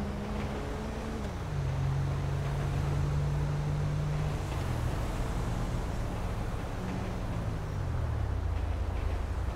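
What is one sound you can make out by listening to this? A car engine hums, dropping in pitch as the car slows to a stop.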